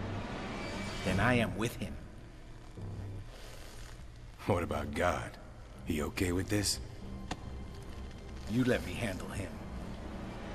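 A middle-aged man speaks in a low, gruff voice.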